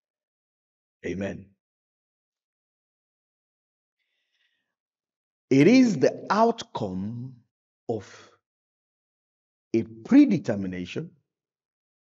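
A man speaks with animation into a microphone, in short bursts with pauses.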